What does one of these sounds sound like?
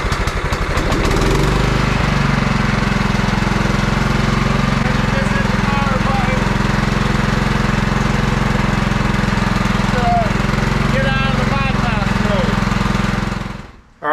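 A small engine runs with a steady, low rumble.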